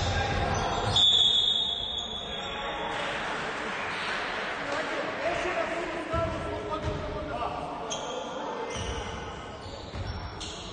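Sounds echo around a large indoor hall.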